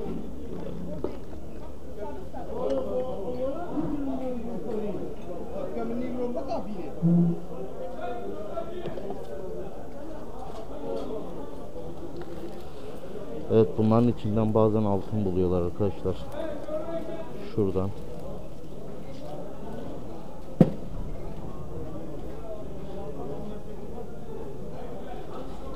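People talk in the background.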